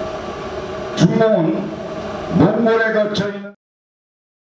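An elderly man speaks emphatically through a microphone and loudspeaker.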